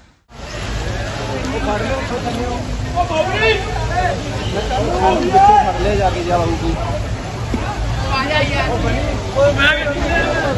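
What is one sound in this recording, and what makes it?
A crowd of young people chatter and shout outdoors at a distance.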